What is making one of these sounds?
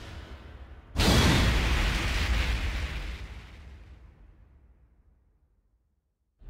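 A deep whoosh swells and fades away.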